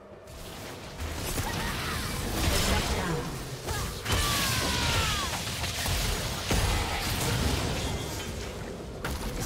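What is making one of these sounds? Magic spells crackle and boom in a fast game battle.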